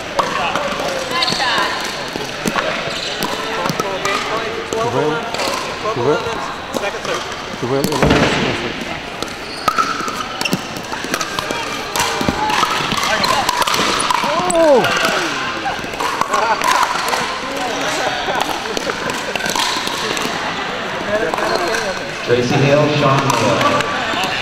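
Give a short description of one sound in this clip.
Paddles hit a plastic ball with sharp pops in a large echoing hall.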